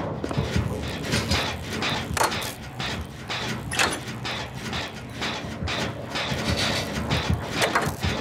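Metal parts clatter and click as a machine is repaired.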